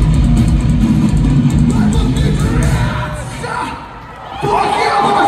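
A rock band plays loudly through a large hall's speakers.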